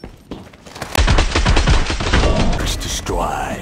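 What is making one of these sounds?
Rapid gunfire bursts loudly and echoes.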